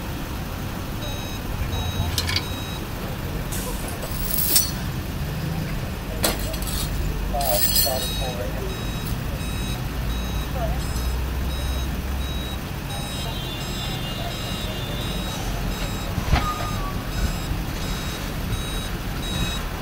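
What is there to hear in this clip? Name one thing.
A tow truck engine idles nearby.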